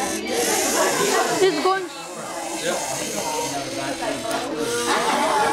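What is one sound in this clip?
The small electric motors of a toy robot whir as it drives across a wooden floor.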